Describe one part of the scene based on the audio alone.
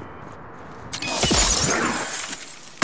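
Gunfire bursts loudly.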